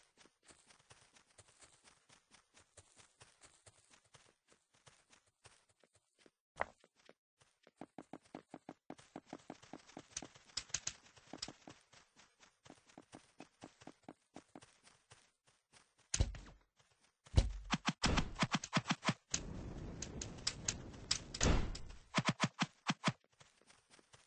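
Quick, light footsteps patter steadily on a hard surface.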